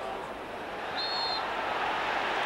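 A referee's whistle blows one short shrill blast.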